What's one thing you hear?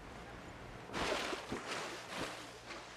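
A body plunges into water with a splash.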